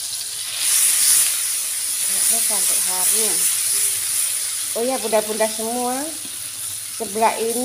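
A metal ladle scrapes against a wok.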